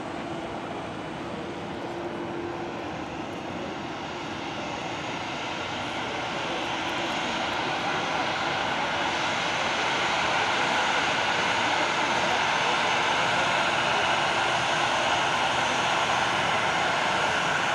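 A jet airliner's engines roar as it taxis close by, growing louder.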